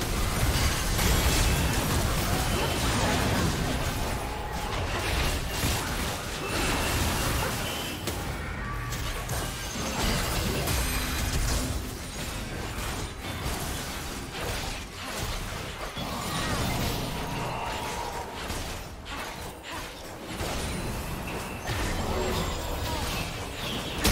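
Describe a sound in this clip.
Game spell effects crackle and burst in quick succession.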